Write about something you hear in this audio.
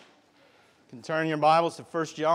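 A man speaks loudly through a microphone in an echoing room.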